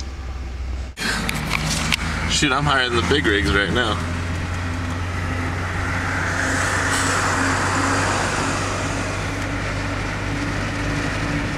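Tyres roar on the road as the vehicle drives along.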